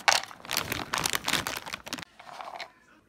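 Almonds rattle and clatter as they pour into a plastic bowl.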